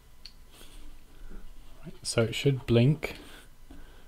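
A cable plug clicks into a small plastic device.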